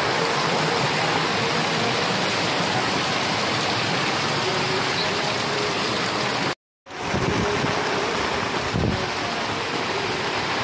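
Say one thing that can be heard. Floodwater rushes and gurgles along a street.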